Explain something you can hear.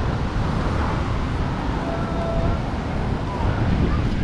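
A crowd chatters in the distance.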